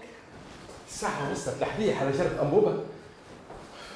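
An elderly man speaks with animation nearby.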